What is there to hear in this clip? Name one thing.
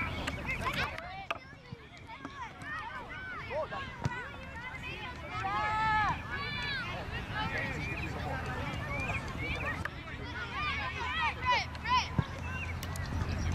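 Spectators cheer and call out from the sideline.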